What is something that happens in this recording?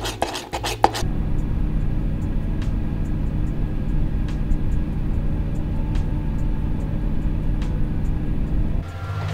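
An oven fan hums steadily.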